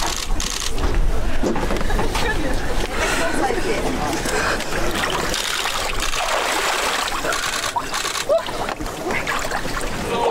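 A woman splashes into icy water.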